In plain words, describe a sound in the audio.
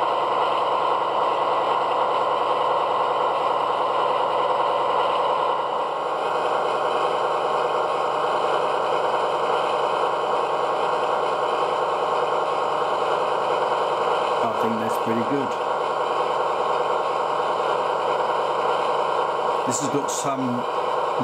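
A model diesel locomotive's engine rumbles steadily at idle.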